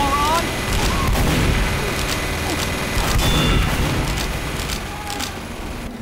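Gunshots pop nearby.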